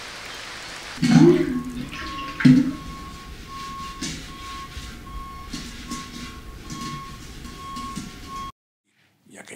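A man scrapes the inside of a metal vessel by hand.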